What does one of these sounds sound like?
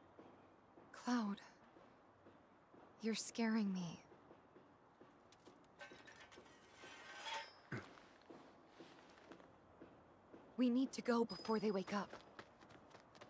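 A young woman speaks softly and worriedly, close by.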